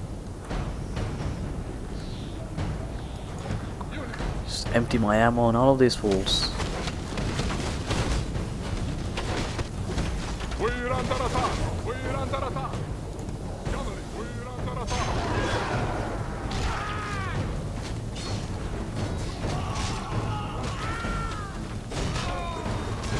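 Many soldiers march with a low, steady rumble of feet and armour.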